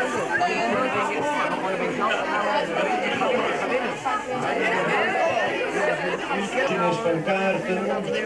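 A man speaks into a microphone, heard through a loudspeaker.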